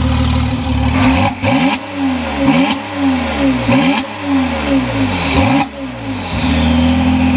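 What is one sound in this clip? A sports car engine revs up and down repeatedly.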